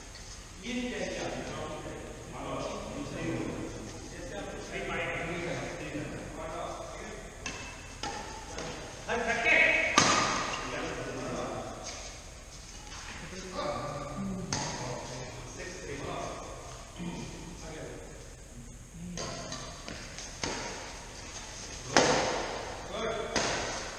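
Men talk and call out to each other in a large echoing hall.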